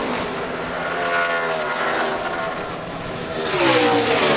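Race car engines whine as they rush past close by.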